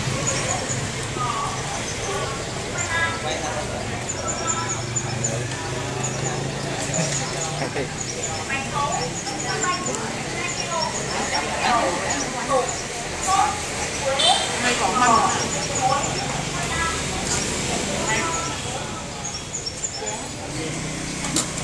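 Several women talk together nearby in animated conversation.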